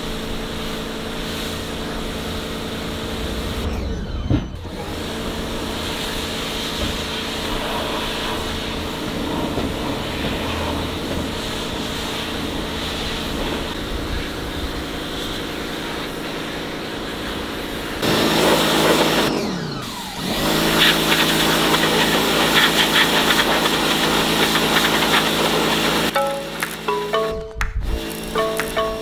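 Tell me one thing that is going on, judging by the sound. A pressure washer sprays water with a loud, steady hiss.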